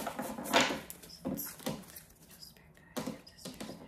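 Cards tap and slide on a table.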